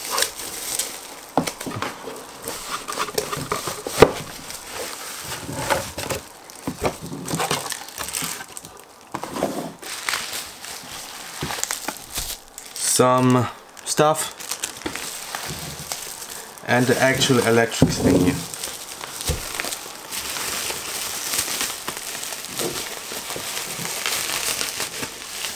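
Bubble wrap crinkles and rustles as it is handled.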